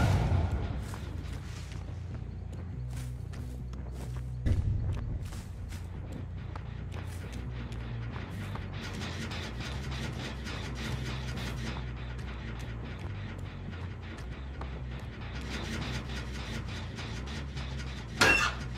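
Footsteps crunch on leaf litter.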